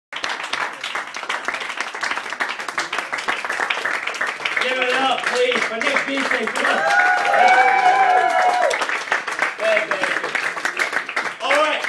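A crowd of people chatters and shouts close by.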